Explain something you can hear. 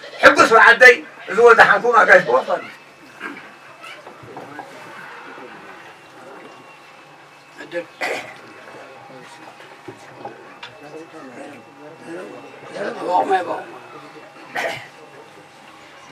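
Men talk quietly in the background.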